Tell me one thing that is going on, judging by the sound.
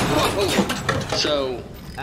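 A robotic arm whirs as it moves.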